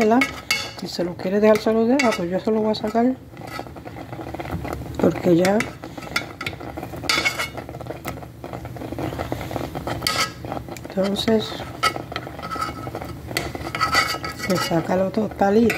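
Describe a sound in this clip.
Thick porridge bubbles and plops as it simmers in a pan.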